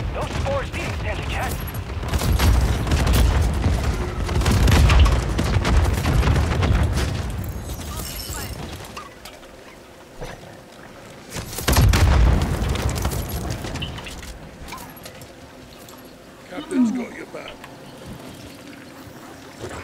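A young woman talks into a microphone with animation.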